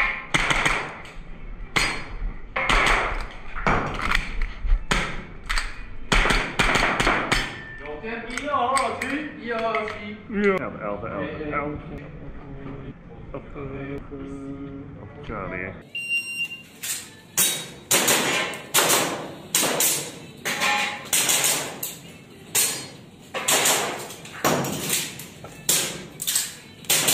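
Pistol shots ring out in quick bursts indoors.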